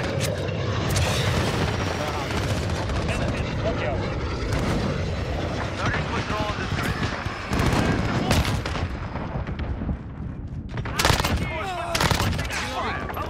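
A rifle fires loud rapid bursts of gunshots.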